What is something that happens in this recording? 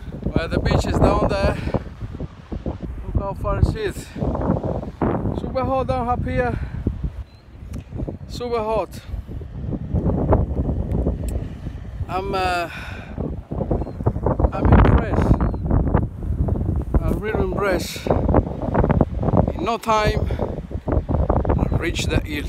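Wind rumbles and buffets against the microphone outdoors.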